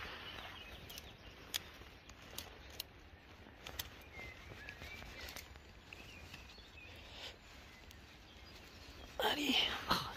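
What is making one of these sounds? A knife snips through soft mushroom stems with small clicks.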